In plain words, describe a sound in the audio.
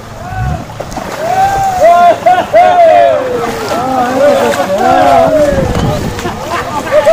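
A crowd of men, women and children cheers and whoops loudly.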